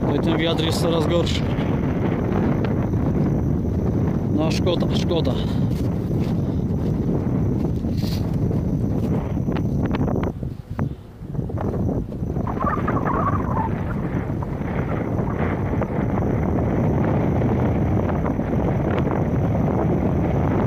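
Wind blows across open fields and buffets the microphone.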